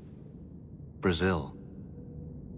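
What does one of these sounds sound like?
A man answers with a single word.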